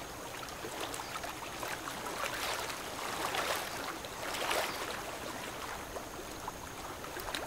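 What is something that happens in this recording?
Water splashes and rushes against a ship's bow.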